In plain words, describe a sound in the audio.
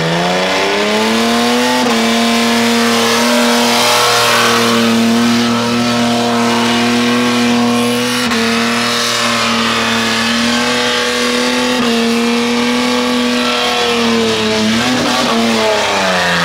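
A car engine roars loudly at high revs, holding a steady pitch with brief dips.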